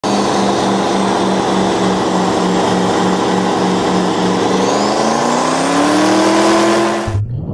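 An airboat's engine roars loudly and steadily, then revs higher.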